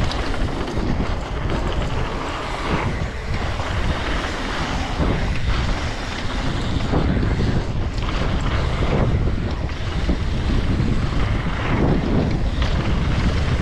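Mountain bike tyres roll and rattle over a dirt trail.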